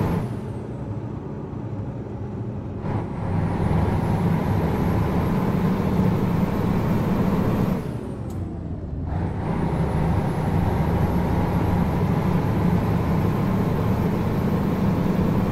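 A heavy truck engine drones loudly, rising in pitch as it picks up speed.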